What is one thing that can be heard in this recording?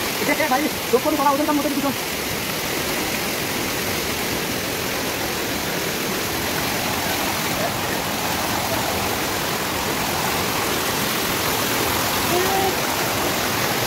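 A river rushes loudly over rocks.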